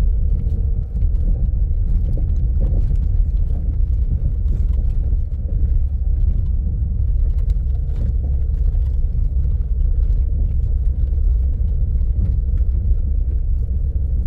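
Gravel and bumps knock against the body of a vehicle on a rough dirt track.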